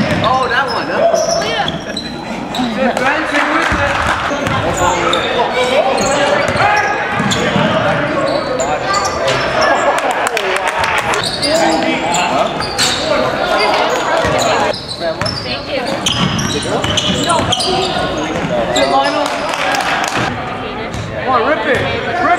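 A basketball bounces on the floor.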